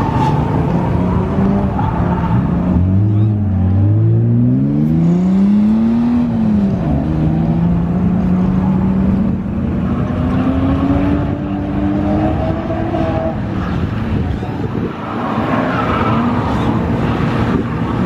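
Tyres screech as a car slides sideways.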